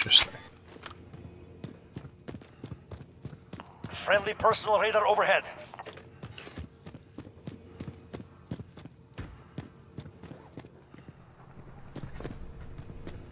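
Footsteps tap quickly on a hard tiled floor.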